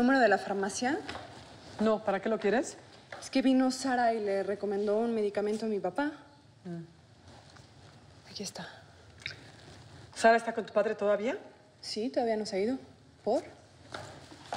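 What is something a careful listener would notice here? A woman speaks calmly nearby.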